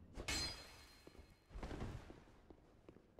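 A heavy weapon crashes down with a loud boom.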